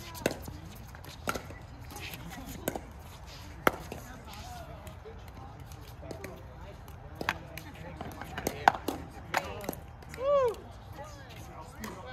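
Players' shoes squeak on the hard court.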